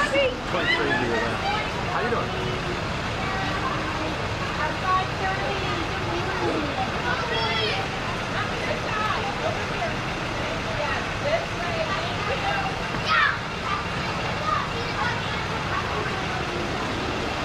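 Children chatter and call out nearby.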